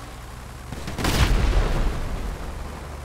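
An explosion booms in the distance.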